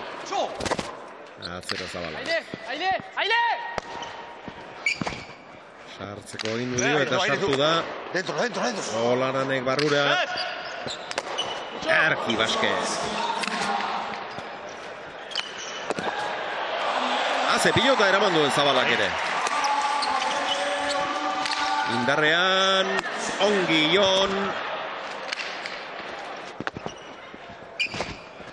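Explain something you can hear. A hard ball smacks against a wall and is caught and flung with loud thuds, echoing through a large hall.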